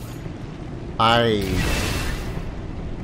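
A magical blast bursts with a loud, crackling roar that slowly fades.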